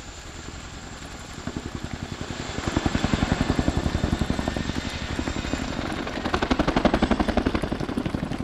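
A helicopter's rotors thump rapidly overhead, growing louder as it comes closer.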